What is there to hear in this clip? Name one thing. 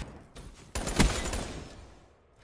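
A rifle fires a single loud, sharp shot that rings out briefly.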